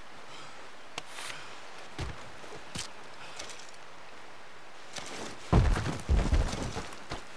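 A carcass is skinned with wet tearing sounds.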